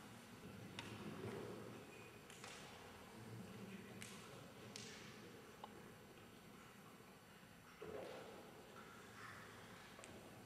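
A man speaks calmly in an echoing hall.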